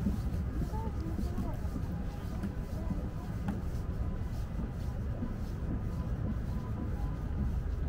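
Footsteps tap on a wooden walkway.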